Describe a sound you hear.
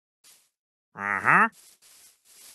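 A villager grunts with a low, nasal murmur.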